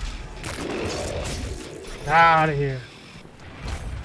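An explosion bursts with a roaring blast of fire.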